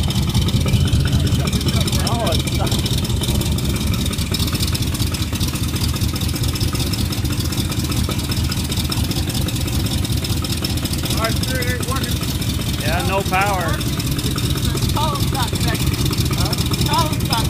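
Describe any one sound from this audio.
A big car engine idles with a deep, steady, loud rumble close by.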